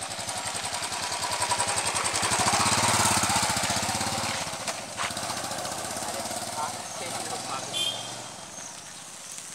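A motorcycle engine rumbles close by, then pulls away and fades into the distance.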